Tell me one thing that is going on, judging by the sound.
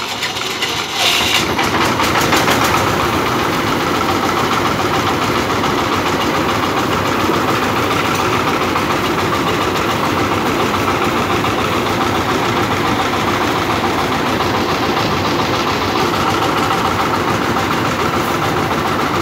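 A diesel engine runs loudly and steadily.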